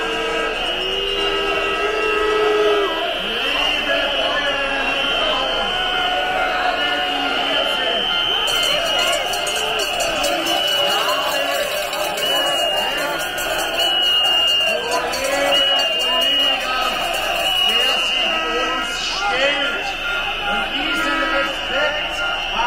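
A large crowd of men and women talks and shouts outdoors.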